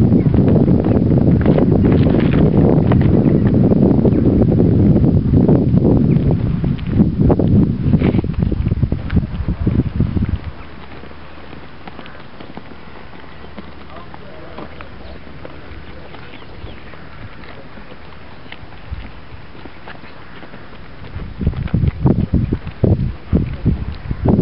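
Boots stamp and shuffle on hard pavement as a group marches.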